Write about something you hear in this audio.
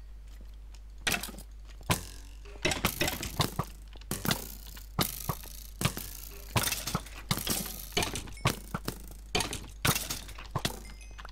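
Game sword strikes sound in quick bursts.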